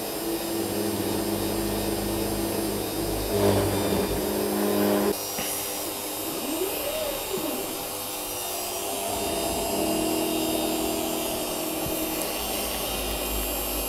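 A cutting bit grinds and scrapes through metal.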